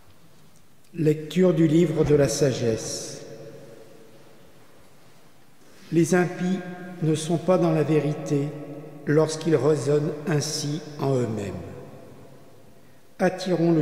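A man reads out calmly through a microphone in a large echoing hall.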